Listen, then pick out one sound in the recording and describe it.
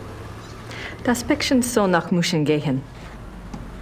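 A woman speaks calmly at close range.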